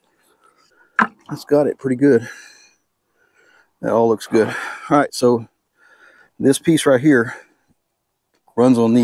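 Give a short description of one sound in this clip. An older man speaks calmly and close by.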